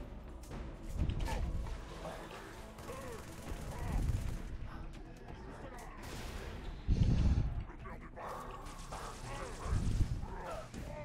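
Gunfire bursts out in heavy thumps.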